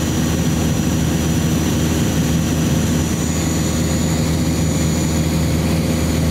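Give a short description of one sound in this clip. A small plane's engine drones steadily and loudly from close by.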